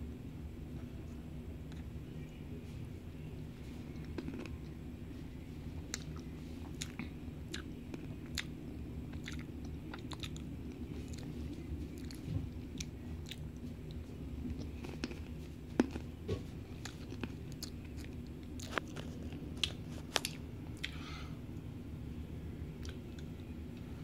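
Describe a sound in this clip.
Fingers flick against lips with soft, wet clicks.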